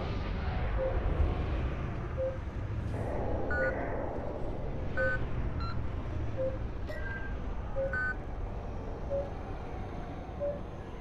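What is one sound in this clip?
Short electronic beeps sound at regular intervals.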